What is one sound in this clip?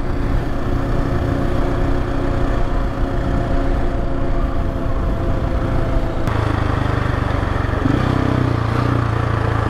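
A motorcycle engine hums steadily as the bike rides along.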